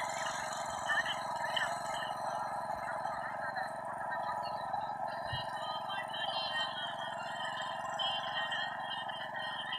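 A power tiller engine chugs in the distance.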